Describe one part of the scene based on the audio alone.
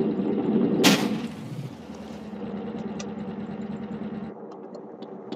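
A motorcycle engine revs and roars.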